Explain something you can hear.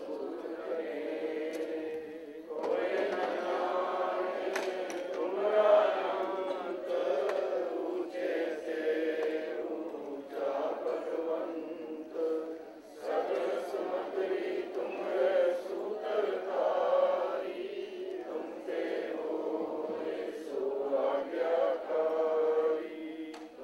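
A man chants into a microphone in a steady, sung voice, heard through loudspeakers in an echoing hall.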